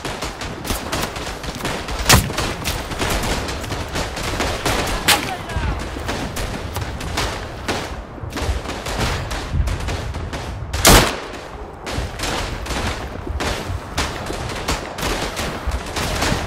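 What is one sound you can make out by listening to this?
Gunfire and explosions crackle and boom steadily in the distance.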